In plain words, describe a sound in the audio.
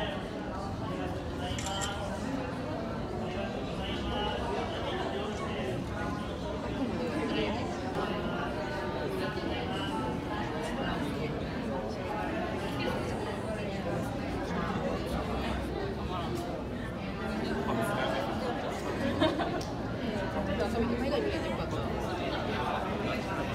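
Many adults chatter and murmur nearby.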